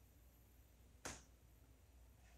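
A padded bench creaks briefly under a shifting body.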